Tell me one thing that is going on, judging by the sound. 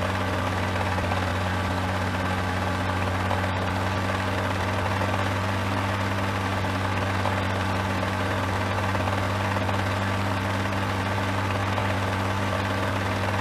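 A helicopter engine drones and rotor blades whir steadily.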